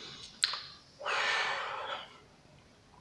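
A man blows out a long breath close by.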